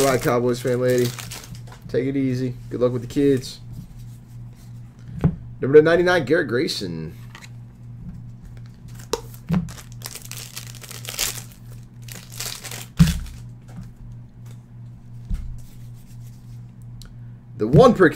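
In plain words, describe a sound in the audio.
Plastic card sleeves and wrappers crinkle and rustle in hands.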